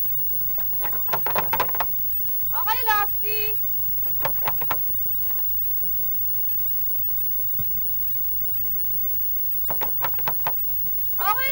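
A metal door knocker bangs repeatedly on a wooden door.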